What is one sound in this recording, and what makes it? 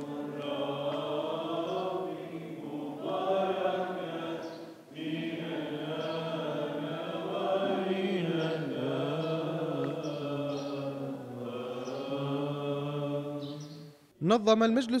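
A group of young men and women sing together slowly in an echoing room.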